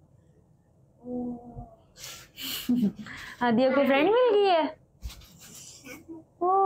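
A young girl talks sweetly and playfully up close.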